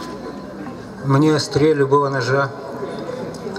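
An elderly man sings into a microphone through loudspeakers.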